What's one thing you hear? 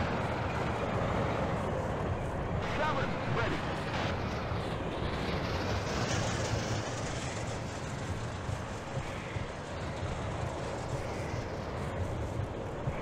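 A tank engine rumbles steadily nearby.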